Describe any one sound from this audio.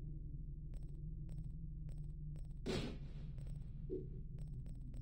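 Soft game menu clicks tick at a steady pace.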